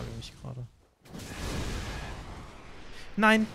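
A fireball bursts with a roar.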